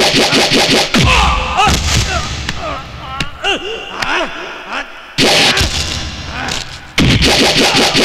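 Punches and kicks land with heavy, sharp thuds.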